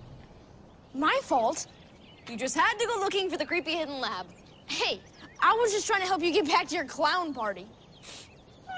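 A young woman speaks with annoyance, close by.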